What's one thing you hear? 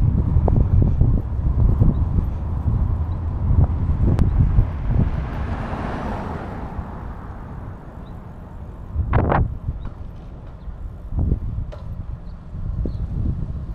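Wind buffets loudly and rumbles outdoors.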